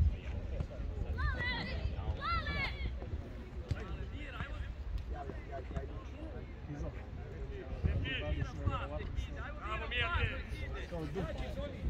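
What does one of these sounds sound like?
Young male players shout to each other in the distance across an open field.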